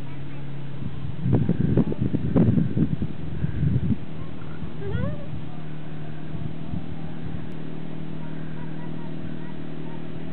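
A quad bike engine drones steadily at a distance.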